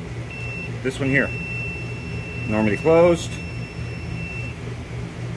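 A multimeter gives a steady, high-pitched beep.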